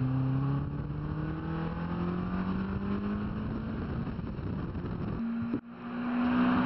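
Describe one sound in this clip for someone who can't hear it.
A car engine hums steadily from inside an open-top car, shifting pitch as it changes gear.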